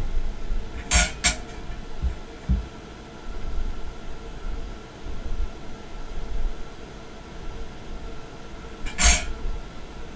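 A metal caliper clicks sharply against a metal plate.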